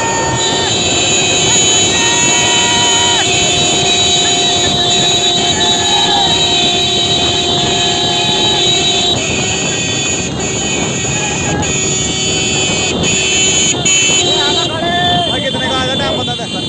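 Motorcycle engines hum steadily close by.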